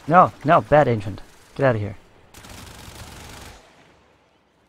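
A weapon fires in short bursts.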